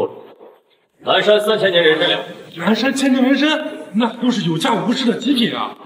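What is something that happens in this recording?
A man speaks with animation up close.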